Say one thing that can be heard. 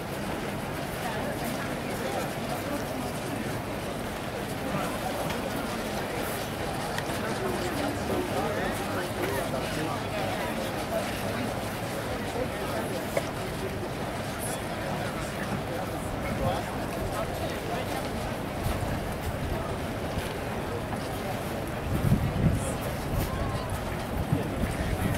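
Horses' hooves thud and crunch slowly on gravel outdoors.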